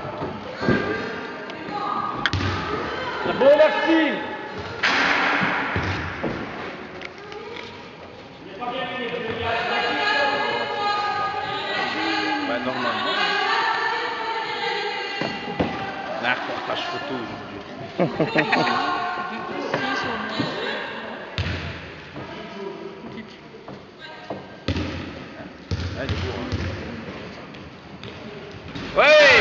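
A woman speaks to children in a large echoing hall.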